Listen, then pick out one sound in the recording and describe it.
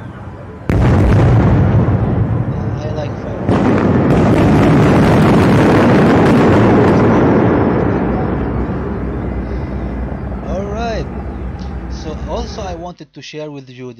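Fireworks boom and crackle loudly nearby.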